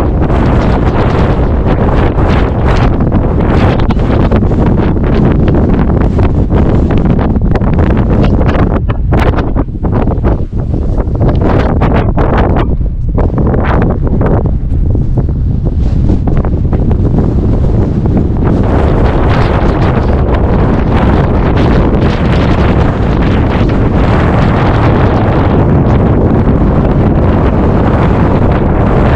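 Strong wind gusts across open country, rumbling against the microphone.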